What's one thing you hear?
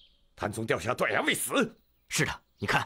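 A man speaks in a low, serious voice close by.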